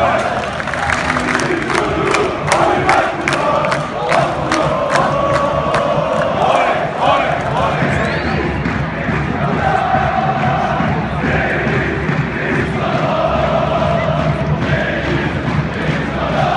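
A large crowd of fans chants and sings loudly in an open-air stadium.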